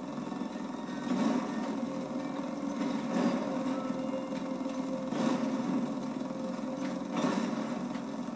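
Explosions boom again and again through a television speaker.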